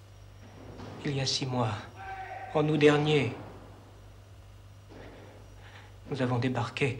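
A young man speaks quietly and haltingly, close by.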